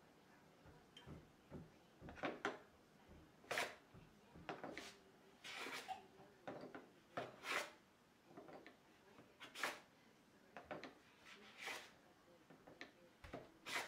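A hand plane shaves wood in short, swishing strokes.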